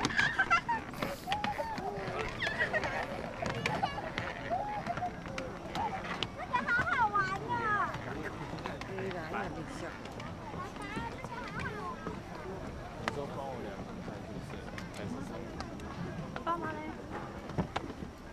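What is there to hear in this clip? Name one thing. Footsteps thud on a wooden bridge.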